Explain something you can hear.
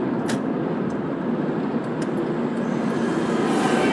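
A large truck passes by close.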